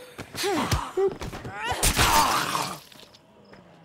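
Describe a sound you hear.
Heavy blows thud into a body.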